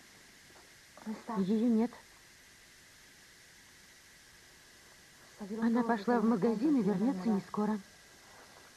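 A young woman speaks at close range, with emotion.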